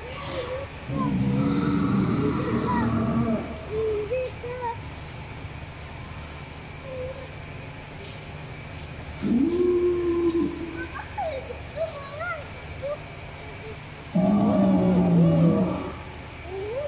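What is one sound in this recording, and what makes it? A dinosaur model lets out loud, deep roars several times.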